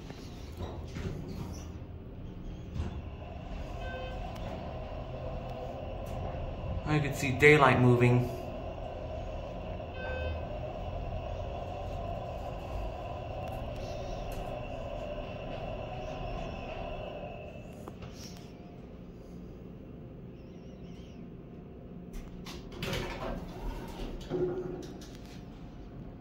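An elevator chime dings.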